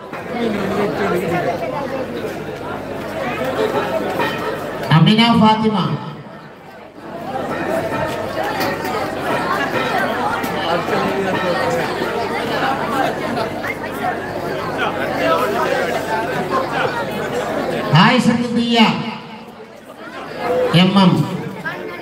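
A crowd of men chatters and murmurs nearby.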